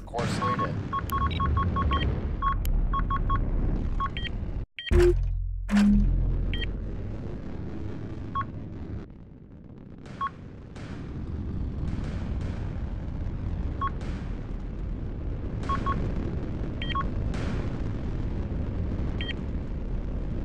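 Short electronic beeps chirp now and then.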